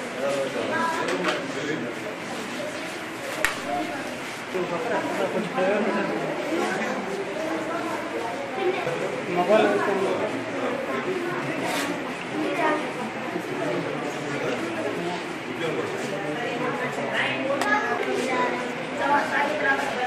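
Children's voices chatter in a room.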